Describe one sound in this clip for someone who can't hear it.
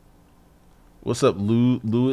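A man speaks up close into a microphone.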